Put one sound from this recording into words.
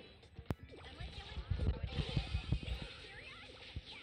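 Video game blasts and impacts go off in quick bursts.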